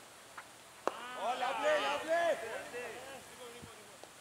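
Men on a cricket field shout loudly outdoors.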